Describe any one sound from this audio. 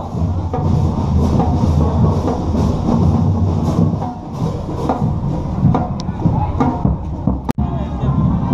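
A brass band plays a march outdoors.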